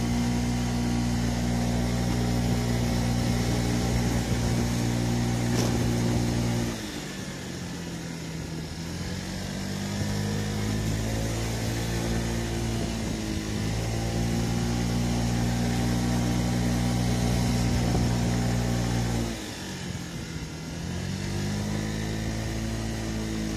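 A scooter engine hums steadily close by, dropping and rising in pitch as it slows for bends and speeds up again.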